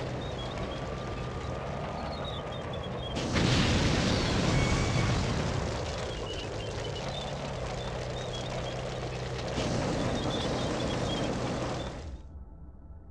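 A heavy engine hums steadily.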